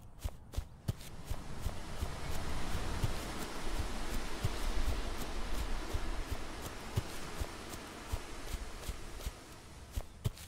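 Tall grass rustles against the legs.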